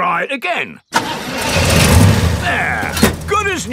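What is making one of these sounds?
A small car engine sputters and starts running.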